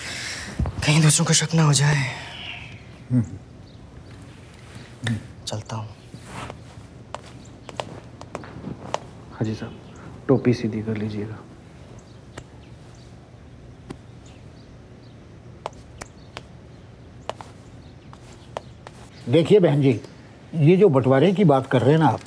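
An elderly man talks calmly up close.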